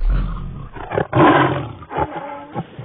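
A large dinosaur roars loudly.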